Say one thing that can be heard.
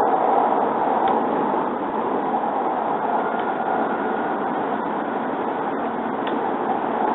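A vehicle hums and rumbles steadily as it travels along.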